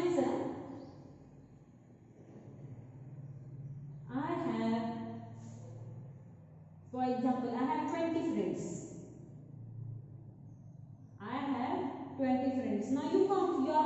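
A woman speaks slowly and clearly, as if dictating.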